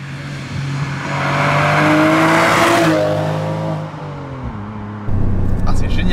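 A sports car engine roars as the car approaches at speed and passes by.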